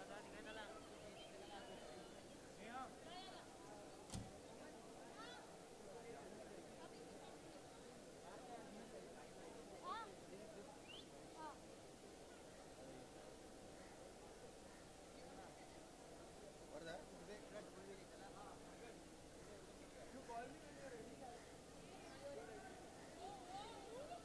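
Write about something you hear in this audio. A crowd murmurs and chatters outdoors nearby.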